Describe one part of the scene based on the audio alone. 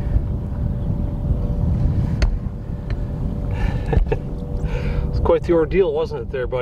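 Water splashes softly as a hand releases a fish.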